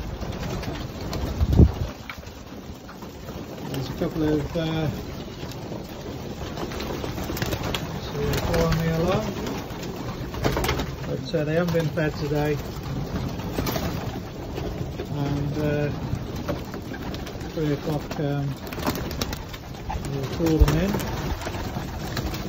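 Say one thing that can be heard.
Pigeon wings flap and clatter.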